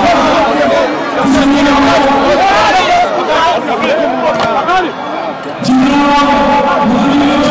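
A crowd of men cheers and sings loudly outdoors.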